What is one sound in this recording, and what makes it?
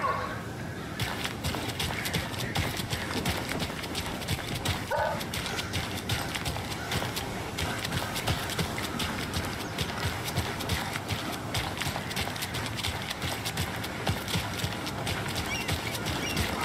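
Footsteps run on wet pavement.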